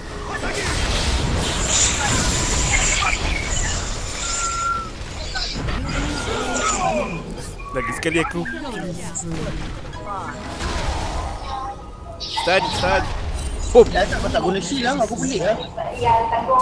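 Magic spells whoosh and crackle in a fast fight.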